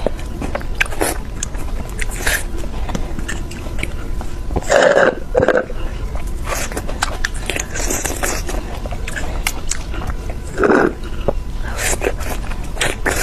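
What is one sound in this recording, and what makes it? Wet mouth clicks and smacks sound close up.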